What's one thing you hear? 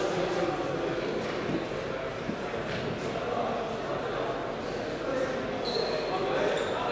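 Shoes squeak and patter on a hard indoor court in a large echoing hall.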